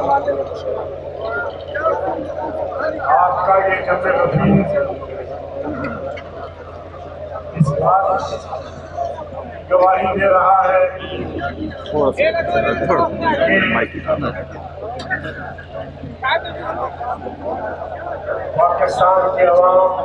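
A man speaks loudly through a loudspeaker to an outdoor crowd.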